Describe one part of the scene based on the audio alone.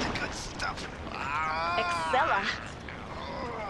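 A woman asks a question sharply.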